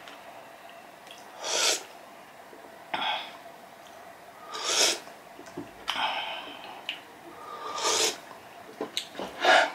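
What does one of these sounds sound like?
A man slurps soup loudly.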